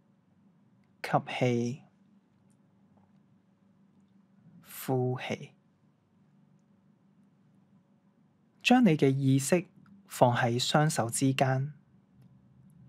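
A young man speaks calmly in short phrases, close by in a quiet room.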